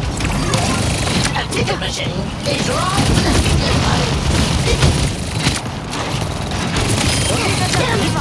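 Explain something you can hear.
Rapid energy pistol shots fire in bursts.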